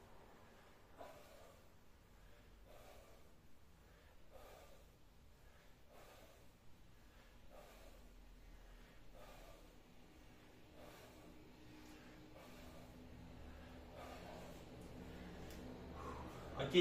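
A man breathes out hard in a steady rhythm.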